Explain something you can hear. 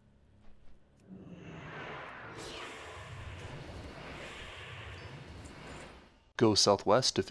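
Magic crackles and whooshes during a fight.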